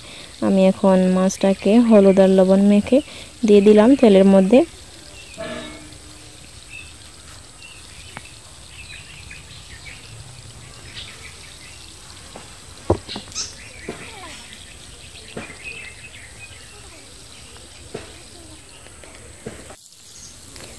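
Fish sizzles and crackles as it fries in hot oil.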